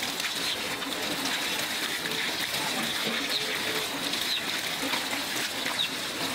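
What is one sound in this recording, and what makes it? Water pours from a tap and splashes on a wet floor.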